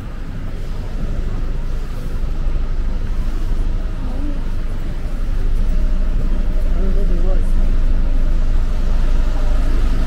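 A double-decker bus engine idles with a low, steady rumble.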